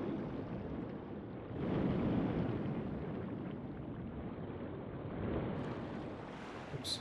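Muffled underwater sound gurgles and rumbles steadily.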